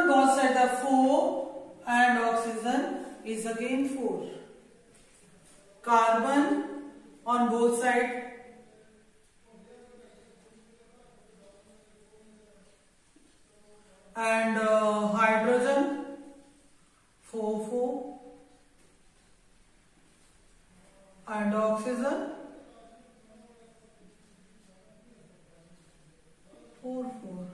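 A woman speaks calmly and clearly, close by, in short phrases with pauses.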